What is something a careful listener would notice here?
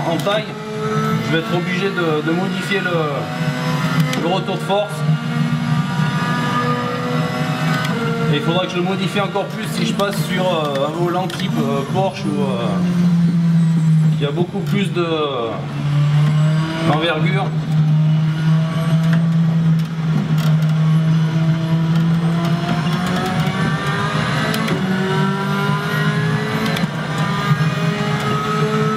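A racing car engine roars through loudspeakers, revving up and down with quick gear changes.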